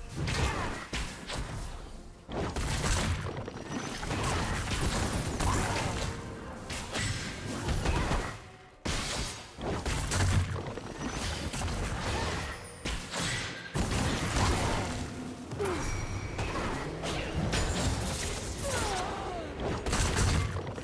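Magic blasts and clashing hits crackle and whoosh in a busy fight.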